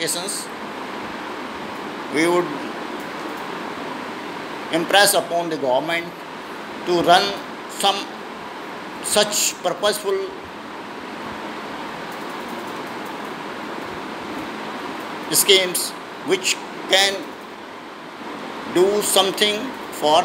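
An elderly man speaks calmly, close to the microphone, in short bursts with pauses.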